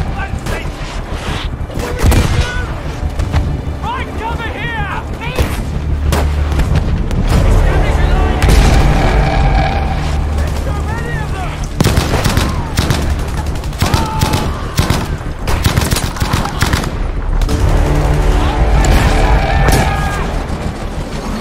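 Distant explosions rumble throughout.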